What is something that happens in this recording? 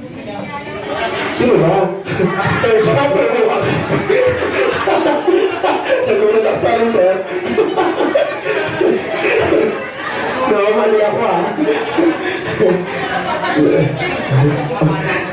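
A crowd of adults and children chatter and cheer in a lively room.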